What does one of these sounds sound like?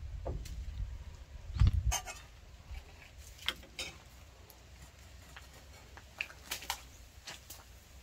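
Metal cookware and dishes clink on a wooden table.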